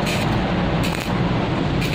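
An electric welding arc crackles and sizzles loudly.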